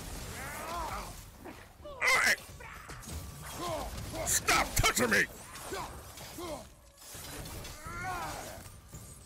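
Heavy blows strike with sharp impacts.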